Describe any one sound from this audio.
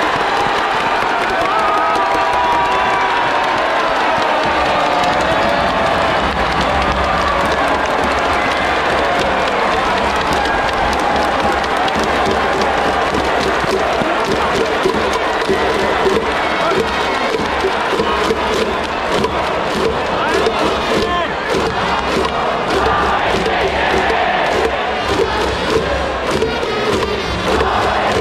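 A huge stadium crowd chants and sings loudly in unison.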